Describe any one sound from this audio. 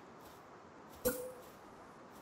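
A wooden building piece drops into place with a thud.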